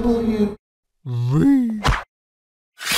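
A high, cartoonish voice speaks playfully.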